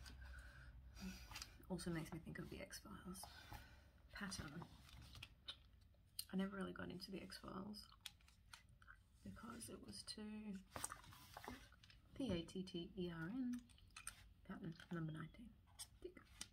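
A young woman talks softly and closely into a microphone.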